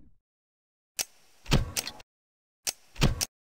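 A game menu clicks sharply as options are selected.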